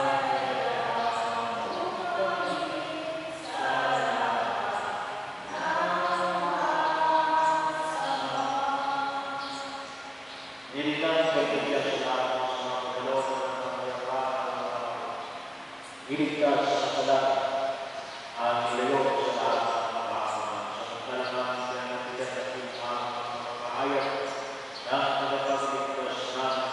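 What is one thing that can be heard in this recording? A man sings slowly through a microphone in a large, echoing hall.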